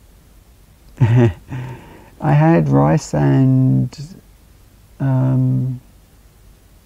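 A young man talks casually and close into a microphone.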